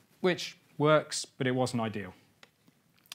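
A young man speaks calmly through a microphone.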